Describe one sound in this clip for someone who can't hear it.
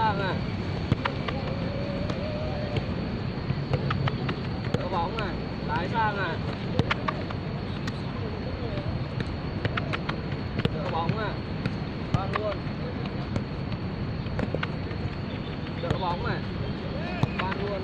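A football is kicked with dull thuds on artificial turf.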